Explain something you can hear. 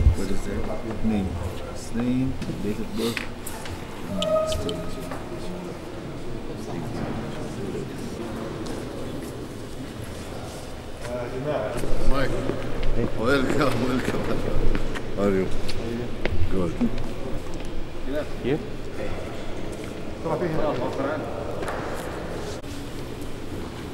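Voices chatter in a large echoing hall.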